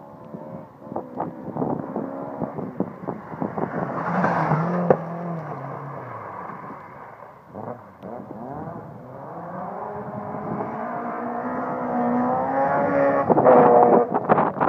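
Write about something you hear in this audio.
A rally car engine revs hard and roars past close by, then fades into the distance.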